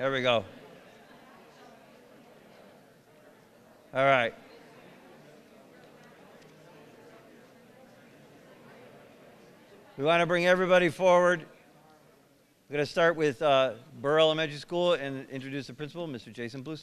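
A man speaks calmly through a microphone in a large echoing hall.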